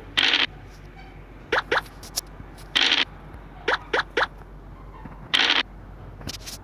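A dice rattles as it rolls.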